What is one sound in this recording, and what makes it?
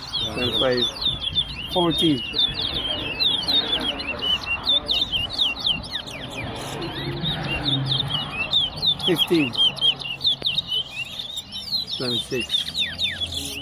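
Caged songbirds sing rapid, high chirping trills without pause.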